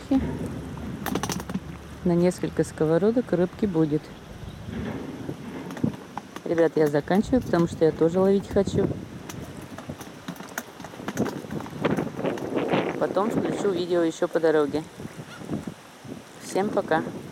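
Water laps gently against a stone edge.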